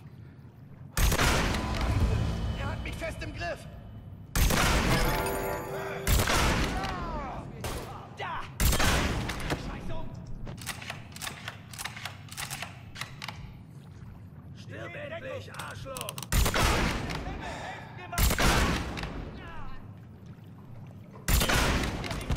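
A rifle fires loud shots that echo and ring out through a large hall.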